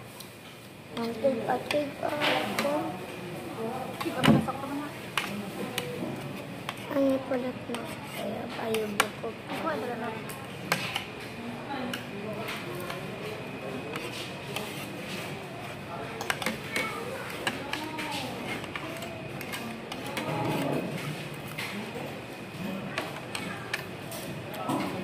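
Forks and spoons clink and scrape on plates.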